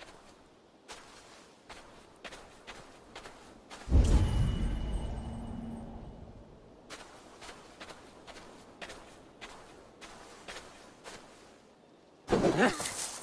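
Footsteps swish and thud through grass.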